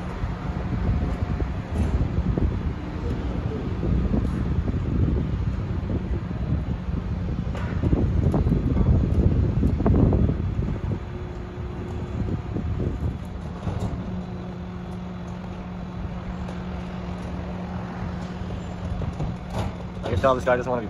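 A garbage truck engine rumbles and idles nearby.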